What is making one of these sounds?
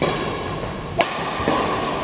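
A shuttlecock is struck sharply by a racket.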